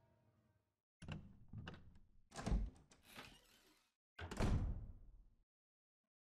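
A wooden door creaks slowly open.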